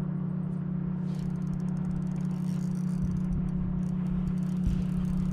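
A fishing reel clicks rapidly as line is wound in.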